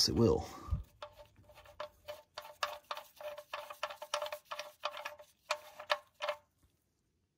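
A metal plug clicks softly as it is unscrewed by hand.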